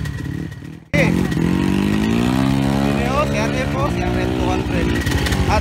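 A dirt bike engine revs up and down.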